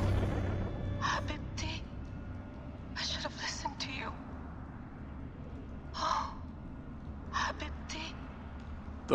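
A woman speaks softly and sadly nearby.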